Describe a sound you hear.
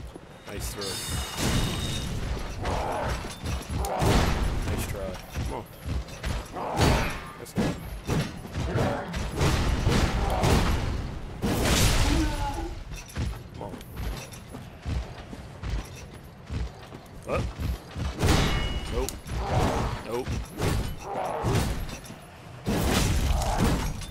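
Metal armour clanks with quick footsteps.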